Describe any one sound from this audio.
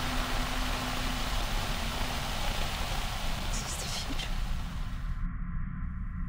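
Television static hisses loudly and steadily.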